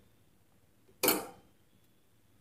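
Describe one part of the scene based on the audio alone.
A small seed drops into a plastic bowl with a soft thud.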